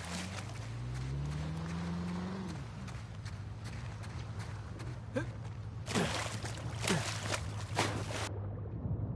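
Footsteps run across soft sand.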